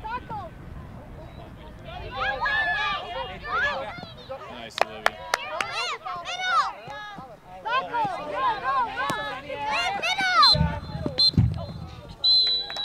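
Young girls shout and call out excitedly outdoors.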